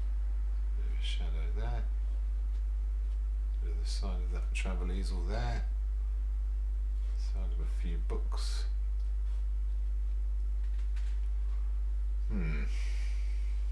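A middle-aged man mumbles quietly to himself.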